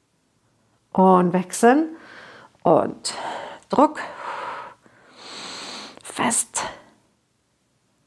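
A woman speaks calmly and clearly, as if instructing, close to a microphone.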